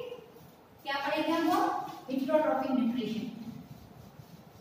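A woman speaks loudly and with animation nearby.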